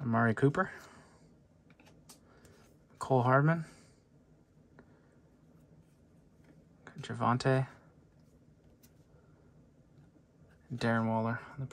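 Trading cards slide and tap against each other as they are shuffled by hand.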